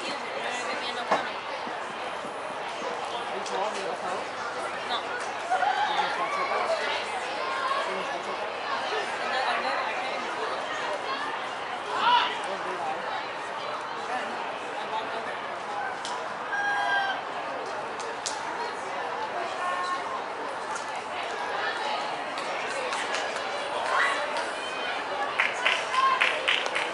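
Young women shout to each other across an open field outdoors.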